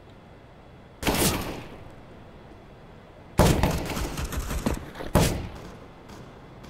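Gunshots ring out loudly in short bursts.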